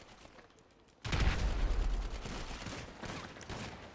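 Footsteps run quickly across sand.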